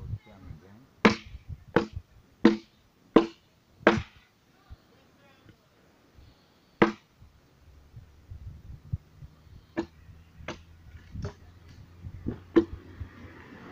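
A hand tool strikes a wooden log.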